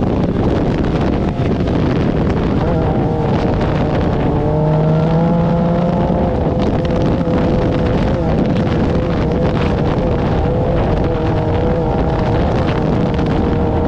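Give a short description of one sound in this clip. Tyres churn and rumble over sand.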